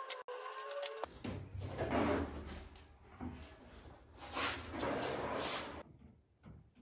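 A heavy wooden slab scrapes and knocks against a workbench.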